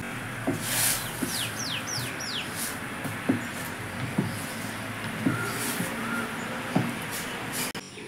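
A spoon stirs and scrapes in a metal pot.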